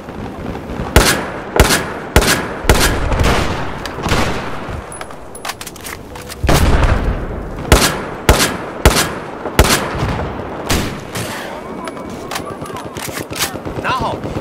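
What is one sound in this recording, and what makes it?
A rifle fires loud single shots, one after another.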